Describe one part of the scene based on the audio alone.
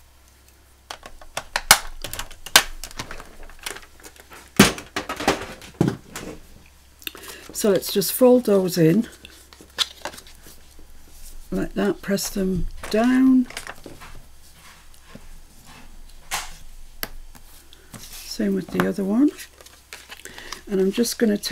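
Stiff card rustles and taps as hands handle it.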